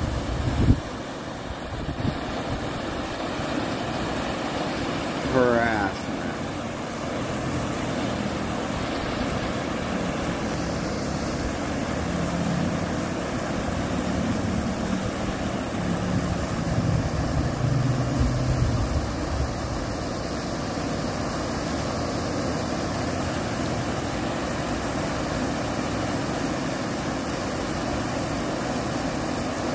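Rushing water pours steadily over rapids outdoors.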